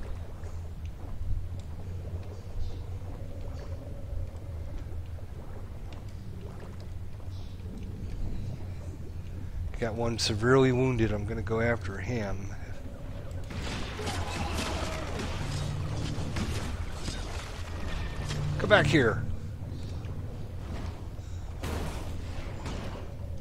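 A low, steady underwater rumble drones.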